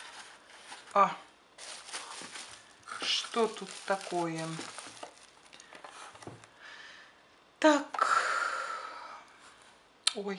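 Bubble wrap crinkles as items are lifted out.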